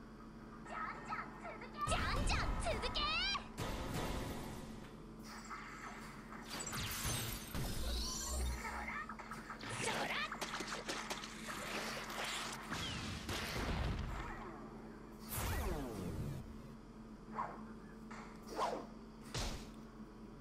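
Game sound effects whoosh, zap and crash during a battle.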